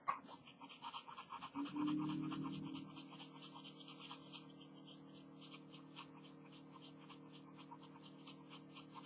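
A pencil scratches rapidly back and forth on paper.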